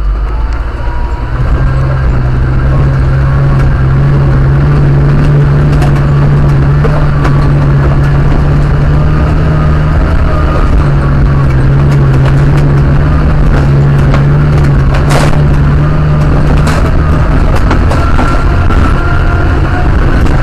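Tyres crunch and knock over loose rocks.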